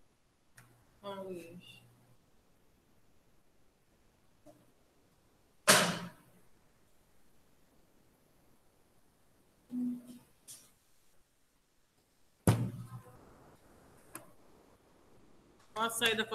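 A woman speaks in short bursts over an online call, heard through a microphone.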